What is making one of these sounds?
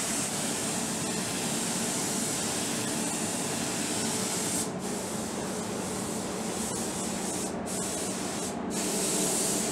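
A spray gun hisses as it sprays paint.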